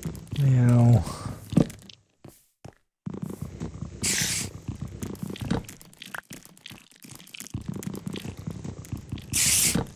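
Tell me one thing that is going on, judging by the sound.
Wooden blocks break apart with quick crunching knocks.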